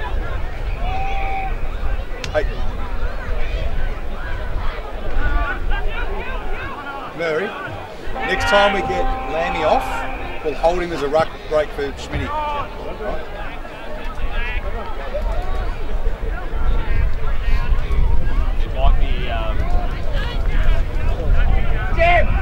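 Spectators cheer and shout from the sidelines.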